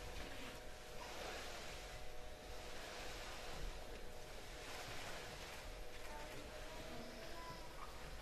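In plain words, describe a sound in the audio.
Feet shuffle and rustle through loose scraps strewn across a stage floor.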